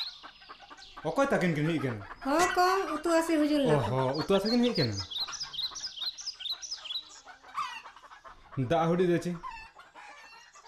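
A woman answers nearby.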